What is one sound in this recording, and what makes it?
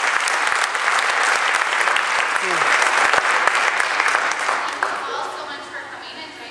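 An audience applauds in a hall, then the clapping fades.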